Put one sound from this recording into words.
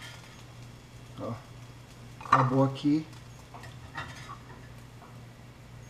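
A spatula scrapes against a frying pan.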